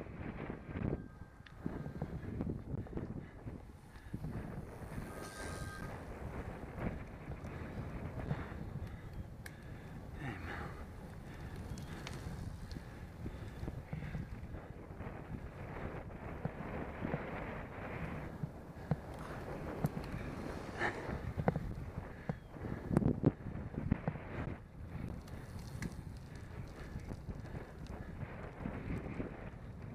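Bicycle tyres hum on smooth pavement.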